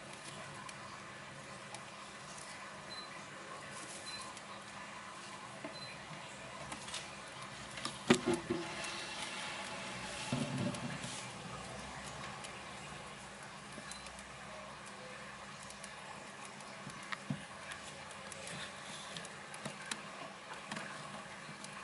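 Small rodents rustle and scurry through dry hay.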